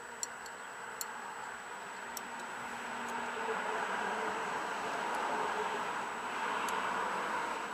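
Pliers click against metal parts of an engine.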